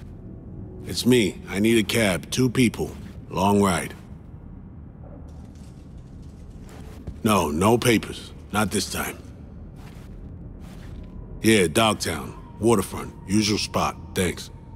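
A man talks on a phone in a low voice.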